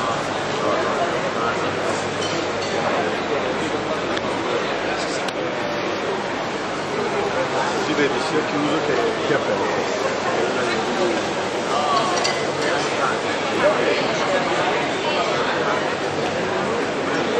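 A crowd of people chatter all around in a large echoing hall.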